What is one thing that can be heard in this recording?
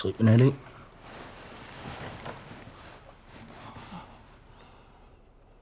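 A man breathes heavily, close by.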